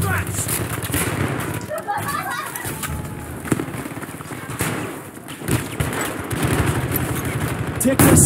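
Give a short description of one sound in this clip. Rifle shots fire in quick bursts and echo off hard walls.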